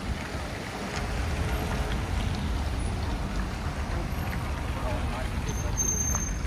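Cars drive past on a street.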